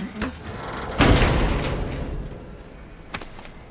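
A heavy lid bursts open with a loud magical whoosh.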